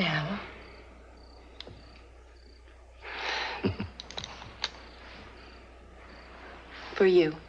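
A woman speaks softly in reply.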